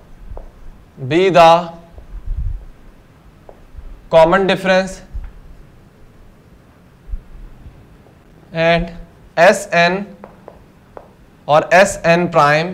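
A young man speaks calmly and clearly nearby, in short phrases.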